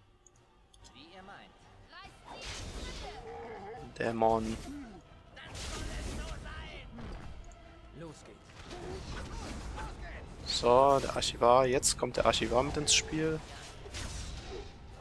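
Fire spells burst and roar.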